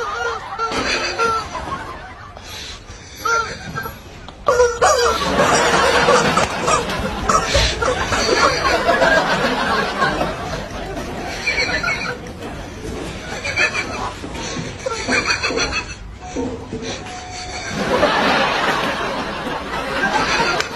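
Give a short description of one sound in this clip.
Several men shout and laugh excitedly outdoors.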